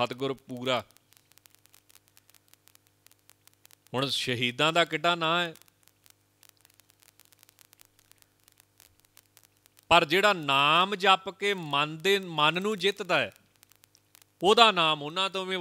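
A man speaks calmly and slowly into a microphone, in bursts with pauses.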